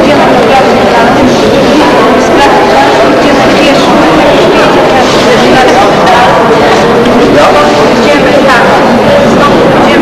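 A crowd of men and women chatter all around in an echoing underground station.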